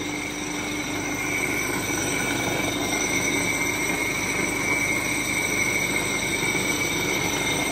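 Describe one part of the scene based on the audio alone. A floor grinding machine whirs and hums steadily.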